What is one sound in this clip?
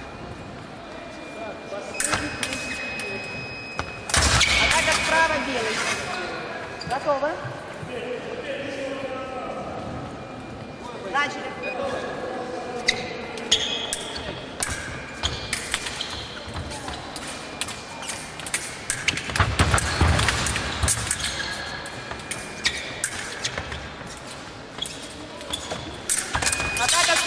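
Fencing blades clash and scrape.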